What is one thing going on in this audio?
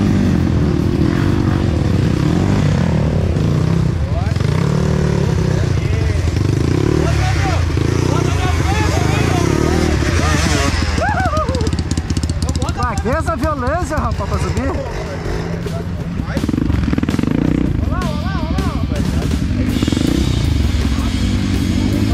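A dirt bike engine revs hard and sputters close by.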